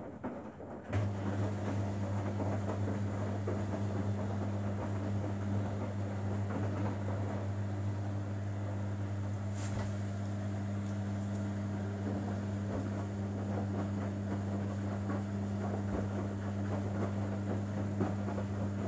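A front-loading washing machine's drum motor hums as it turns.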